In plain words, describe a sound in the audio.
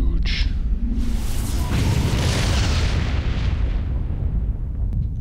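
A loud whoosh rushes past and fades.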